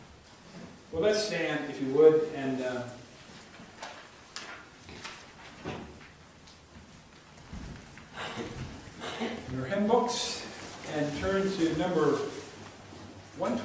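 An elderly man speaks calmly into a microphone in a slightly echoing room.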